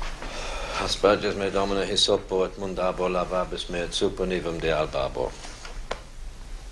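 A man reads aloud in a steady, solemn voice.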